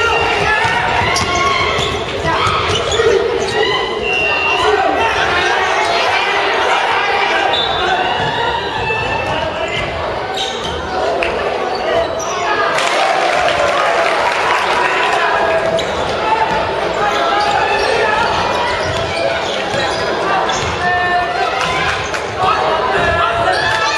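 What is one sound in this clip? A crowd of young people shouts and cheers in a large echoing gym.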